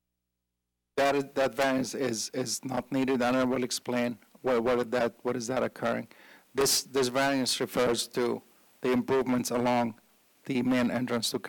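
A middle-aged man speaks calmly into a microphone, heard through a loudspeaker in a large room.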